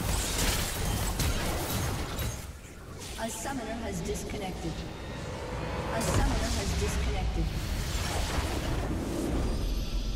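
Magic blasts and hits crackle and thump in a fast fight.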